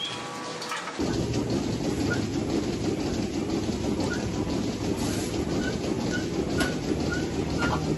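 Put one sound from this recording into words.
A milking machine hums and pulses steadily up close.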